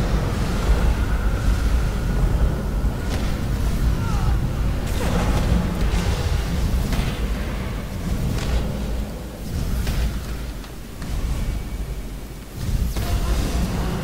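Loud thuds and crashes of a fight with a large creature ring out.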